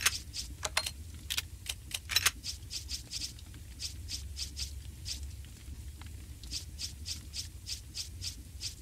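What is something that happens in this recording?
Short electronic clicks tick in quick succession as a menu cursor moves.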